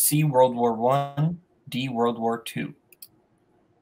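A young man speaks with animation over an online call.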